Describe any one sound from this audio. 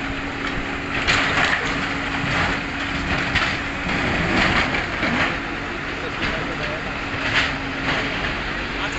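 A metal cabin scrapes and clanks against a truck bed as it is pushed.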